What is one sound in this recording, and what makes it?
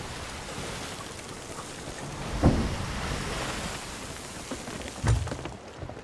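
Waves crash and roar against a ship.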